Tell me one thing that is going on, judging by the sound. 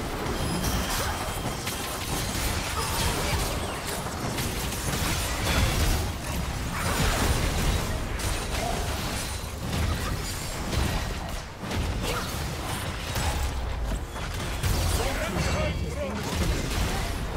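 Spell blasts and hits crackle and boom in a busy fight.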